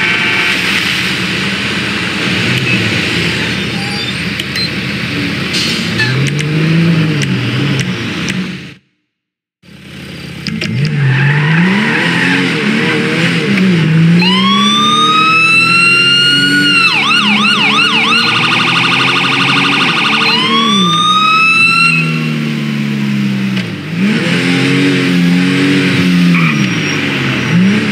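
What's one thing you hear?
A car engine revs up and down as the car accelerates.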